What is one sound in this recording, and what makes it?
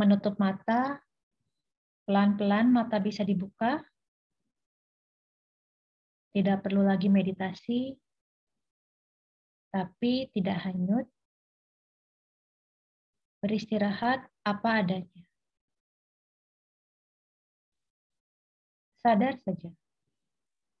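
A middle-aged woman speaks calmly in short phrases over an online call.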